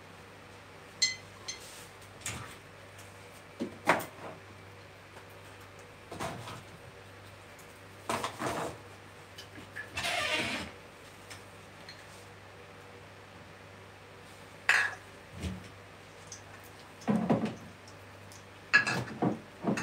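Glass bottles clink as they are picked up and set down.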